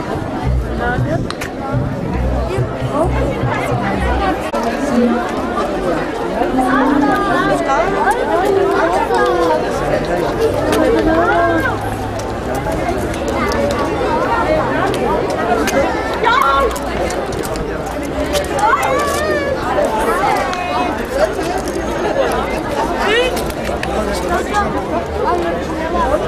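A large crowd of men, women and children chatters all around, outdoors.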